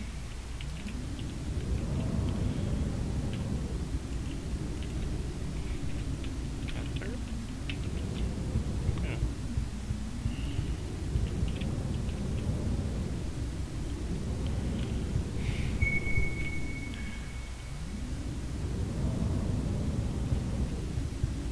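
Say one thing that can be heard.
Light footsteps tap softly across a wooden floor.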